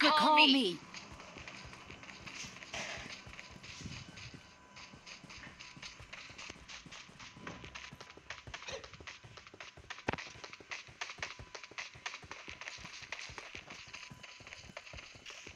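Footsteps run quickly and steadily over grass and dirt.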